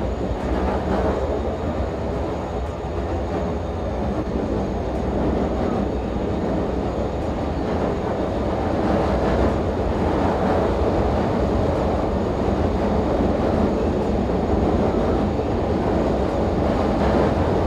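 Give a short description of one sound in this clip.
A diesel locomotive rumbles steadily as a freight train rolls along the tracks.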